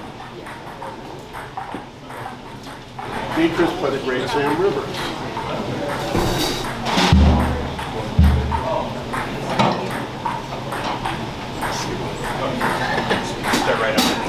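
Drums keep a steady beat with cymbals.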